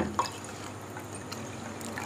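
Water pours into a glass.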